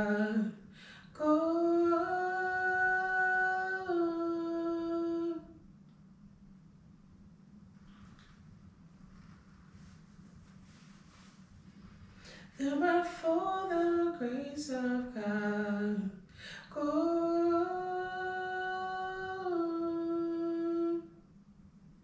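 A woman sings long, held notes close to a microphone.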